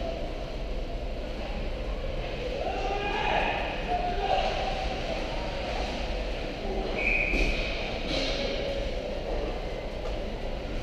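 Ice skates scrape across the ice in a large echoing hall.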